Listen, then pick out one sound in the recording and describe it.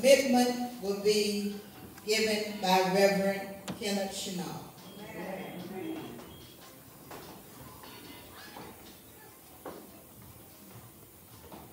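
A woman speaks with feeling through a microphone in an echoing hall.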